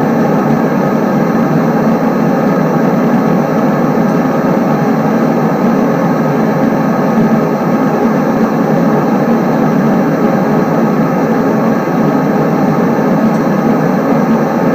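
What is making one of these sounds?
A train engine drones steadily as the train rolls along the tracks.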